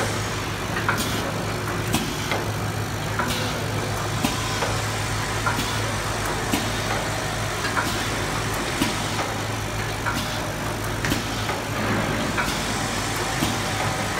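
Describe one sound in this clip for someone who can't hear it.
A packaging machine hums steadily.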